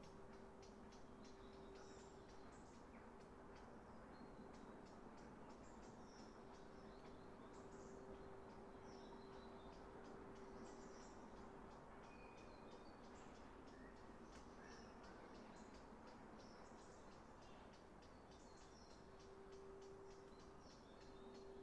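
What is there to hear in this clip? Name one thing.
A steam locomotive chugs steadily with rapid puffing exhaust blasts.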